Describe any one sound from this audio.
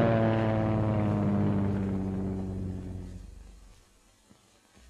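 A propeller plane's engines drone steadily overhead and fade away.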